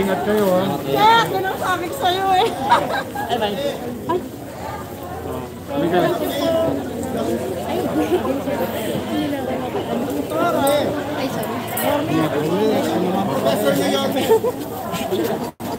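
A crowd of people chatter around, outdoors.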